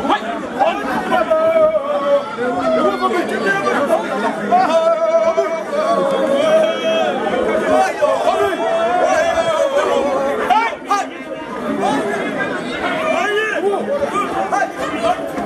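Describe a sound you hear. A crowd of men and women talk and shout outdoors.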